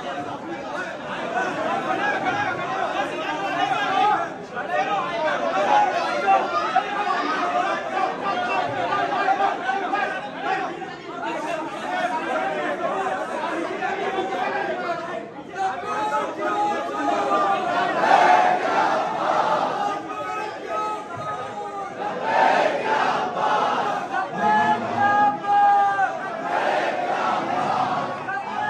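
A large crowd of men chants and shouts together loudly in an echoing hall.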